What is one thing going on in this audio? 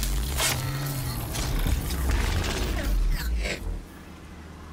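A spear strikes a metal machine with heavy clangs.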